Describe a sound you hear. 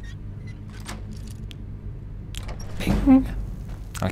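A lock clicks open.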